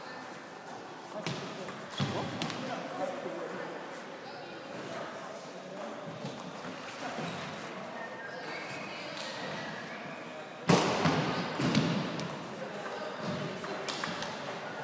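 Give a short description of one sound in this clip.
A table tennis ball clicks back and forth off paddles and a table in a large echoing hall.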